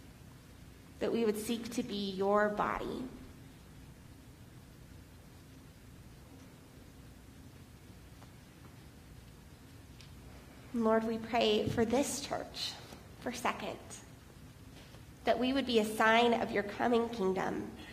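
A young woman reads aloud calmly, with pauses, in an echoing room.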